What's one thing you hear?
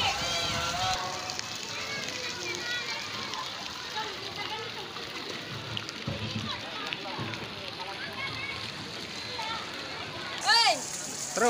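A jet of water splashes into a pool.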